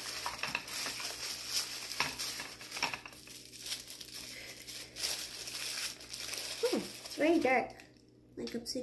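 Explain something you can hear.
Tissue paper rustles and crinkles as it is unwrapped.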